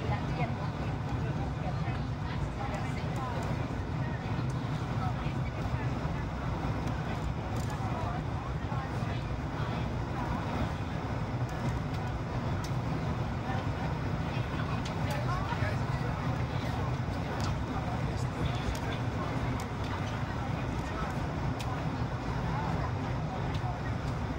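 Jet engines roar steadily, heard from inside an airplane cabin.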